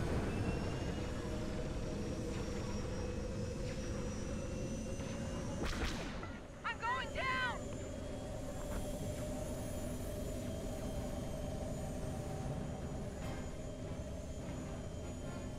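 A spacecraft engine roars with a steady low rumble.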